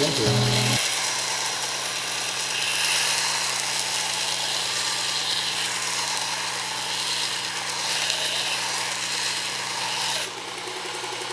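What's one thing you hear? A belt grinder hisses as a knife blade is sharpened against it.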